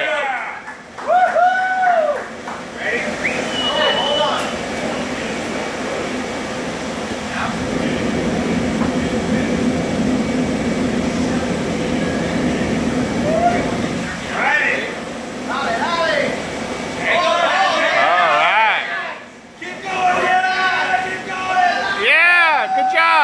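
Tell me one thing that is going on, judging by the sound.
A mechanical bull whirs and bucks.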